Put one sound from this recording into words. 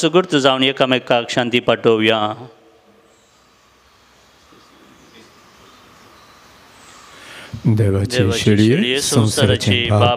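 A man chants through a microphone in an echoing hall.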